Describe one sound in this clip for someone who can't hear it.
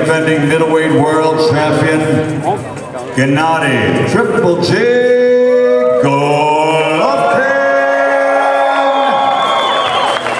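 An elderly man announces with drawn-out words over a loudspeaker.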